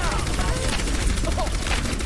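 A game's energy gun fires with a buzzing hum.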